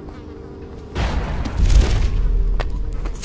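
A sudden magical whoosh rushes past.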